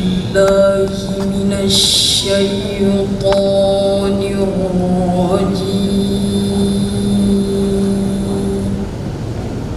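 A young girl chants melodically into a microphone, with long held notes.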